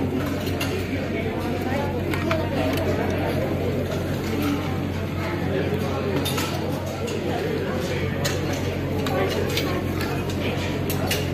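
Clothes on hangers rustle as a hand brushes through them.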